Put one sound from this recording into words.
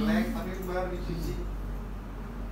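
A young man speaks calmly, heard through a loudspeaker.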